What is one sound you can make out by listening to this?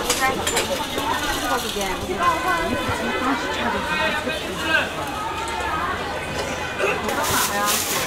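A crowd chatters in a busy outdoor market.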